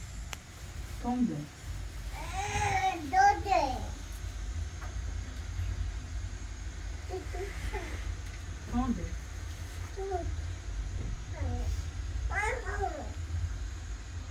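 A small child babbles and squeals.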